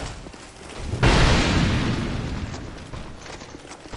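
A fiery blast roars and slowly fades.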